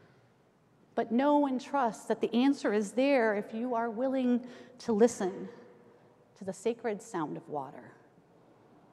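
A woman speaks calmly through a microphone in a large echoing room.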